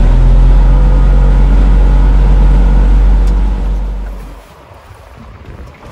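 Water rushes along a boat's hull.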